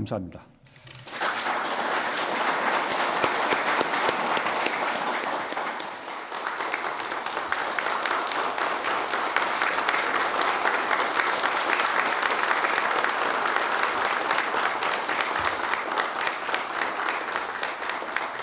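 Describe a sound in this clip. A man claps his hands.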